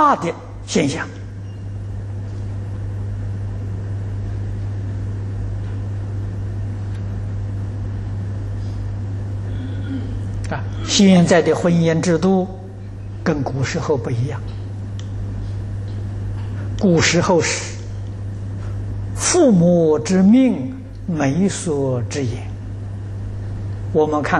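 An elderly man speaks calmly close to a microphone, as if lecturing.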